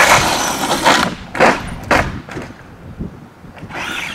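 Plastic wheels thump on asphalt as a toy truck lands from a jump.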